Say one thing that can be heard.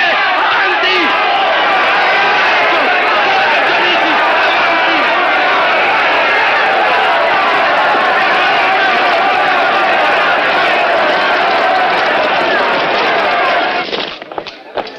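A large crowd shouts and cheers loudly.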